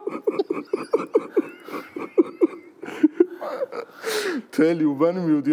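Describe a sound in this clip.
A man laughs loudly in quick bursts, close to a microphone.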